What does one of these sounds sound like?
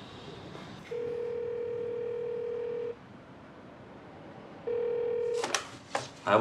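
A desk telephone rings with a steady electronic tone.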